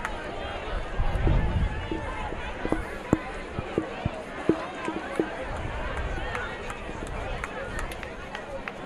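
A crowd murmurs in the stands of an open-air stadium.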